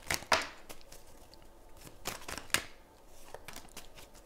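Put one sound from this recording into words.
A card is laid down on a table with a light tap.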